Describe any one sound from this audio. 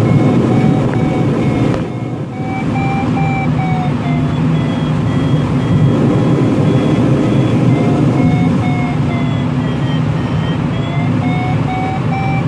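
A small plane's engine drones steadily with a slightly wavering pitch.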